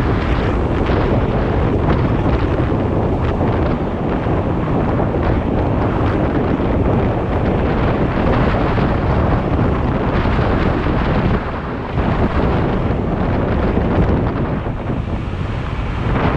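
Wind roars across a microphone at speed on an electric scooter.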